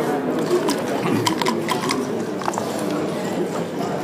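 Dice rattle in a cup and clatter onto a board.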